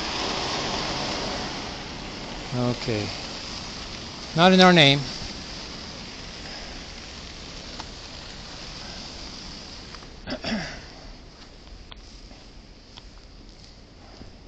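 Tyres hiss and crunch over a snowy road.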